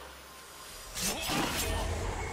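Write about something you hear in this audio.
Spell effects whoosh and crackle in a fantasy battle game.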